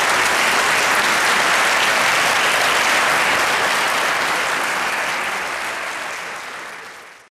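A large audience applauds loudly in an echoing hall, then the clapping fades.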